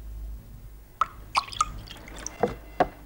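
Milk pours into a cup.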